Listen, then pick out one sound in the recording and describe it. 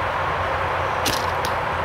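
A bowstring twangs as an arrow is released.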